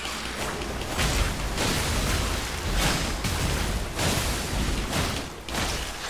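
A huge creature crashes through water with heavy splashes.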